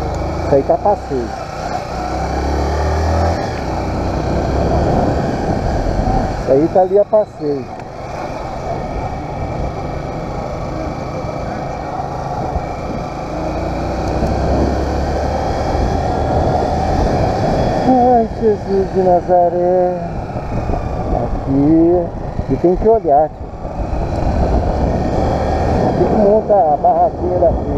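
A motorcycle engine rumbles and revs as it rides along.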